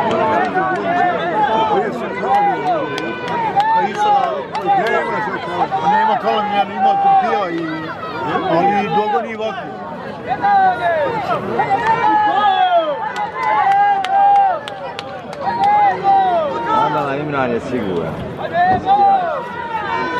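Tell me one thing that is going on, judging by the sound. A large outdoor crowd of men and women chatters and calls out loudly.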